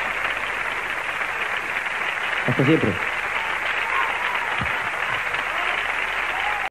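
A large audience cheers and applauds loudly throughout.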